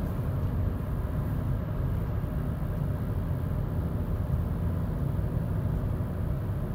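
Tyres roll on the road with a low, steady rumble.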